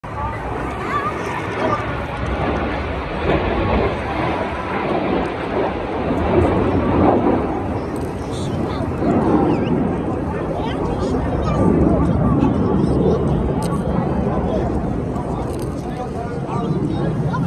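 A formation of jet aircraft roars far overhead in a steady, rumbling drone.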